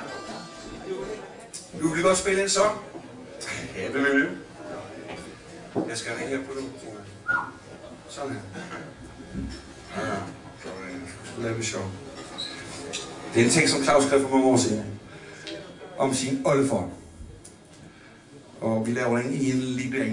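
A man talks with animation into a microphone, heard through loudspeakers.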